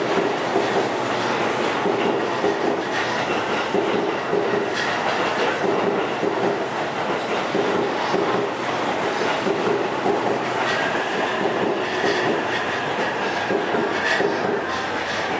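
A train rumbles steadily at a station, heard outdoors.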